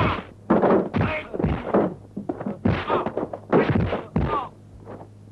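Punches and kicks land with sharp, slapping thuds.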